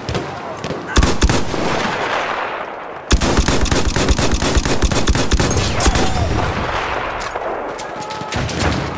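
A machine gun fires rapid bursts up close.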